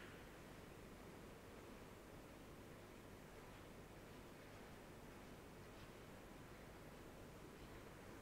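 Footsteps tap faintly across a hard floor in a large echoing hall.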